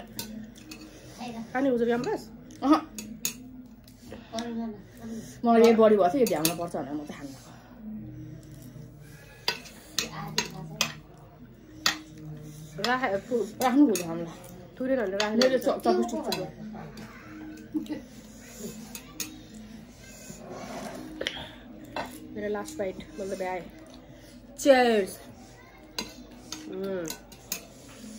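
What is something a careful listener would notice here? Chopsticks and forks click against plates.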